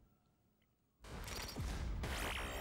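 Lasers zap in quick bursts.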